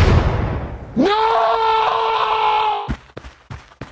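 A cartoon soldier screams in a high voice.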